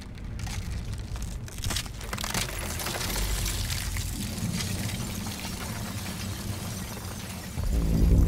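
Glass cracks and shatters.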